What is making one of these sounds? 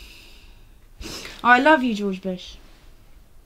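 A young woman groans sleepily close by.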